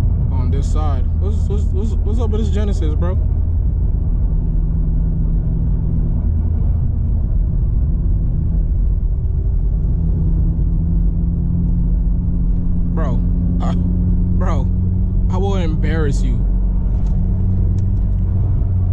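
A car engine drones steadily while driving.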